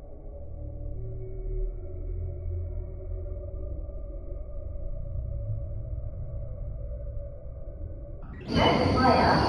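A passenger train rolls slowly past with a low rumble.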